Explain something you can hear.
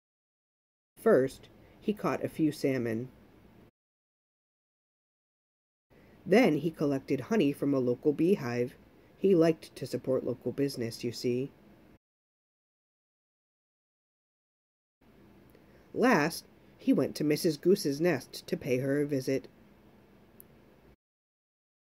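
A man reads aloud calmly and clearly, close to a microphone.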